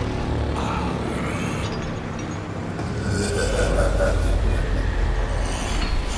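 A man snarls and growls in strain.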